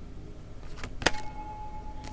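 A playing card taps sharply once against a hard surface.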